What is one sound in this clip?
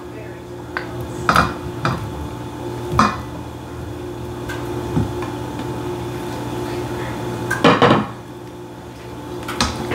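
A spatula scrapes and stirs in a metal bowl.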